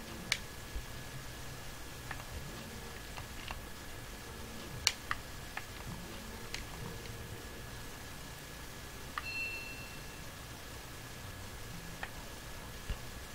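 Soft game sound effects blip and click as a character jumps.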